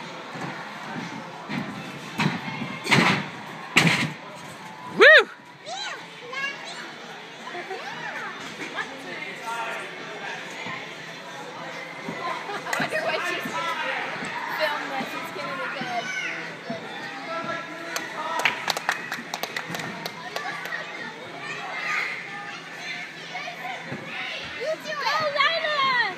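Children and adults chatter and call out in a large echoing hall.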